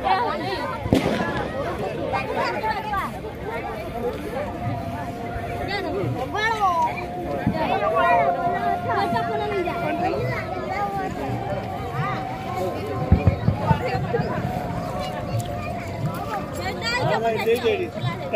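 A crowd of women chatters and sings nearby outdoors.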